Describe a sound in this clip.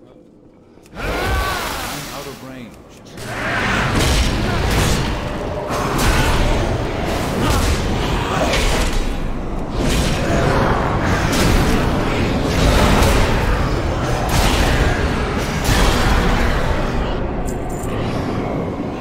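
Game spell effects whoosh and crash in bursts.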